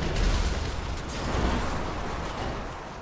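An explosion bursts with loud crackling debris.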